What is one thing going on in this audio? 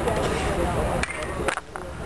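A bat cracks against a baseball.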